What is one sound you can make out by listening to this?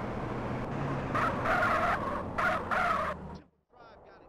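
Car tyres screech while skidding.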